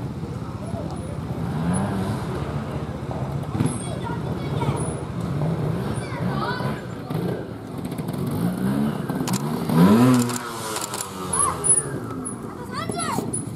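A motorcycle engine revs in short bursts nearby.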